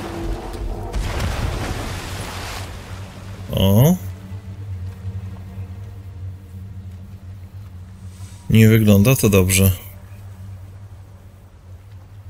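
Water splashes and sloshes around a swimmer.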